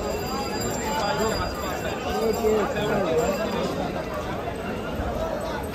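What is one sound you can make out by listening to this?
A crowd of men chatter nearby outdoors.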